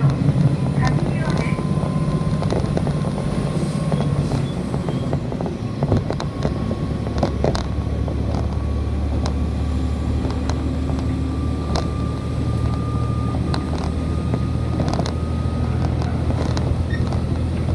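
A train rumbles steadily along the tracks, with a low engine hum.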